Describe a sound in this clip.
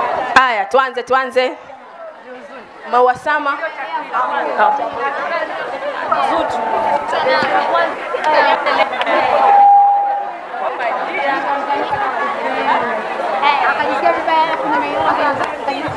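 A crowd of women chatter and cheer excitedly close by.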